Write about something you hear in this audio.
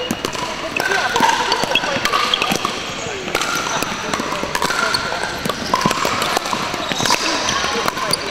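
Paddles pop against a plastic ball in quick rallies, echoing in a large hall.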